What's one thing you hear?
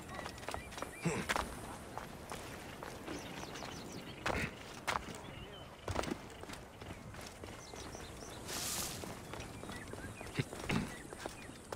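Thuds sound as a man lands from jumps and climbs.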